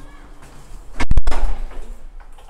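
A glass door bangs shut.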